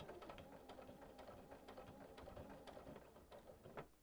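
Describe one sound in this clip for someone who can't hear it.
A sewing machine hums and stitches steadily.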